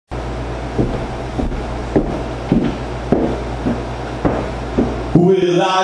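Footsteps thud on a floor.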